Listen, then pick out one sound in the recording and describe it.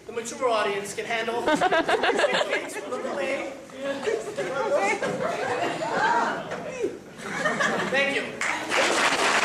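A man speaks with animation in a large hall, heard from among the audience.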